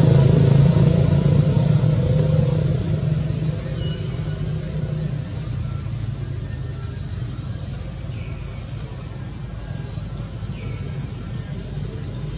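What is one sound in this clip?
A monkey chews on a banana.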